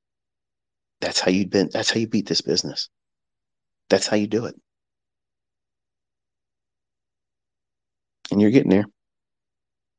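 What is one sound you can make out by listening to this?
A man speaks close to a microphone in short bursts.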